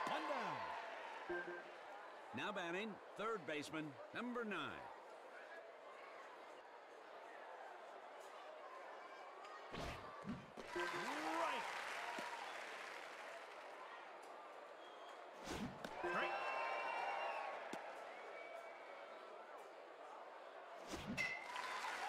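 A crowd murmurs and cheers in a large stadium.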